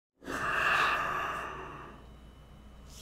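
A man sighs heavily into a close microphone.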